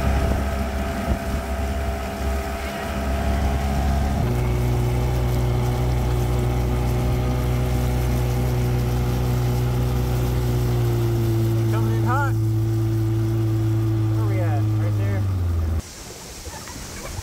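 Water rushes past the hull of a moving boat.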